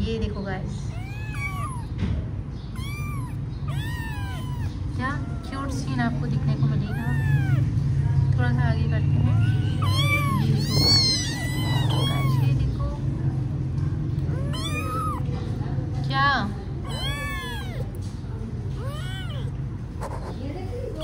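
A cat purrs in a low, steady rumble close by.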